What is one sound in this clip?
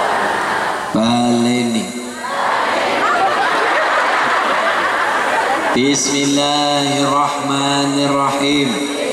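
A man sings long, held notes through a loudspeaker.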